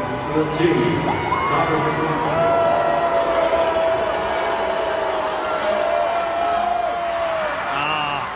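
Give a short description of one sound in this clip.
Ice skates scrape and glide across the ice.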